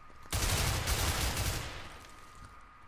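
A rifle shot booms and echoes away.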